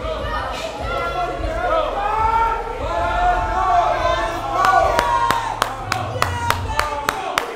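A man calls out encouragement nearby.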